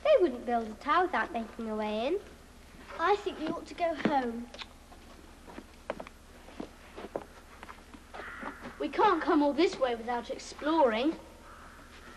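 A young girl speaks anxiously, close by.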